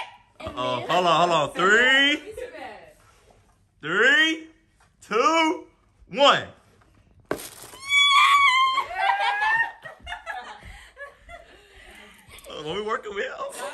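A young woman squeals and exclaims excitedly up close.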